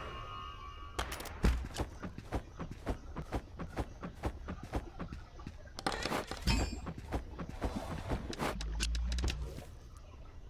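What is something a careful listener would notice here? Quick footsteps patter across a hard floor.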